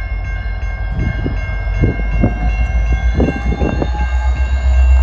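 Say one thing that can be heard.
Freight train wheels clatter over rail joints.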